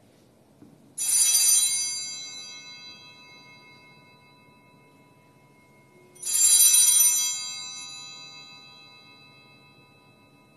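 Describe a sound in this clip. A small hand bell rings brightly and rings on as it fades.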